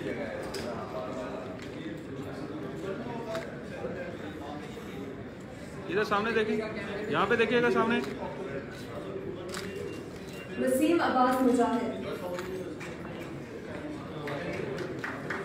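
A man talks briefly in an echoing hall.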